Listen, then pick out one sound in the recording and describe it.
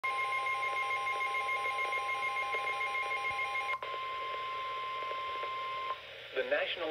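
A weather radio sounds a loud, steady alert tone through a small speaker.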